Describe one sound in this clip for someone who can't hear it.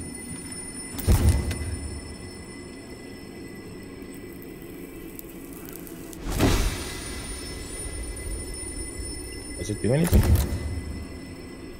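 A heavy object crashes against a wall, scattering debris.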